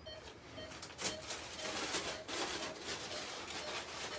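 A paper sheet rustles and crinkles close by.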